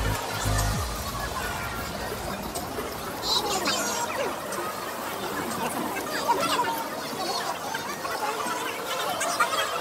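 A crowd chatters in a busy street outdoors.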